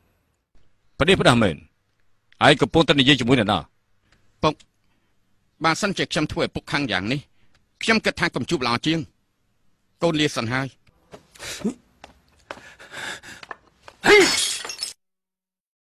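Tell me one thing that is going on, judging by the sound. An older man speaks firmly in a deep voice, close by.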